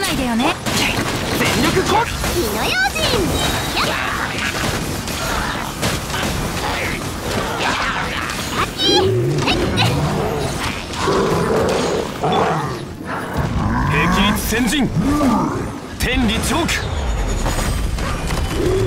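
Magic blasts and impacts crash and boom rapidly.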